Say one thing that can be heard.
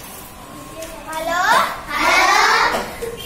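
A young girl reads out loud in a high voice.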